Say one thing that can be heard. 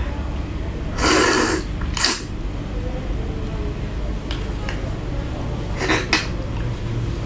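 A young woman cracks crab shell with her hands.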